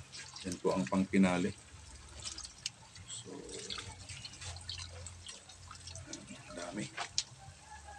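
Liquid pours into a hot pan and sizzles.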